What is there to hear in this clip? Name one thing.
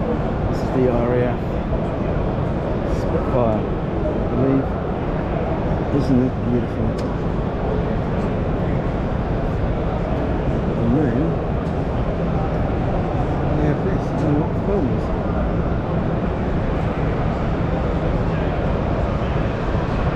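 A crowd murmurs steadily all around, echoing in a large indoor hall.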